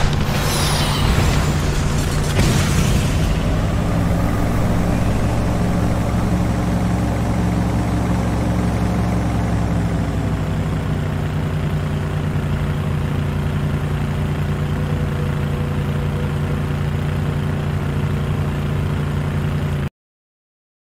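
A vehicle engine roars steadily as it drives.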